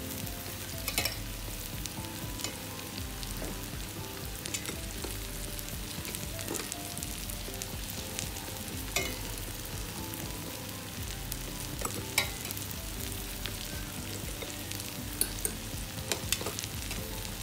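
A metal utensil clinks against a pot.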